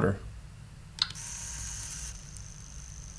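A small electronic device gives a short buzzing beep as a button is pressed.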